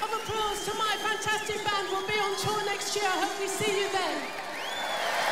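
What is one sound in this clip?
A woman sings into a microphone.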